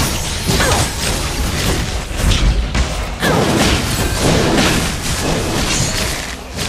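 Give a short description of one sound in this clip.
Game spell effects whoosh and blast in quick bursts.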